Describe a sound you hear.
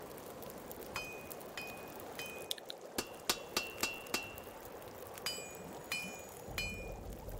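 A hammer strikes metal with ringing clangs.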